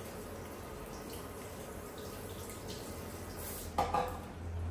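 Water sprays softly from a hand shower.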